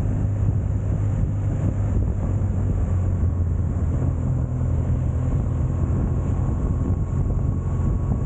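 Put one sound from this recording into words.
A motorcycle engine hums steadily at close range.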